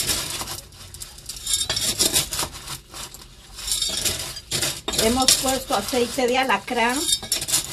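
Hands squish and rustle wet material in a foil tray.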